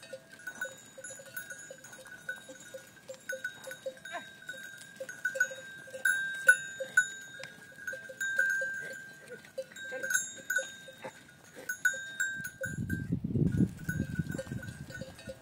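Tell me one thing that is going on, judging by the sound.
Bells on a herd of goats jingle as the goats move.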